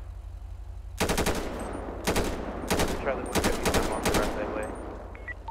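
A rifle fires a rapid burst of loud shots.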